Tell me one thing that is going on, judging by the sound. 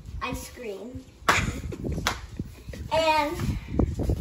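Feet thump and shuffle on a hard floor.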